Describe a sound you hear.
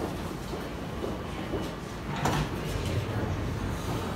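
Subway train doors slide shut with a thud.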